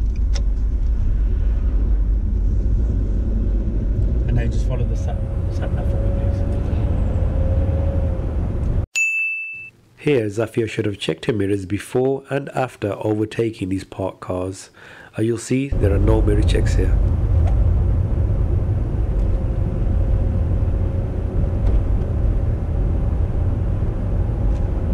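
A car engine hums and tyres rumble steadily on the road.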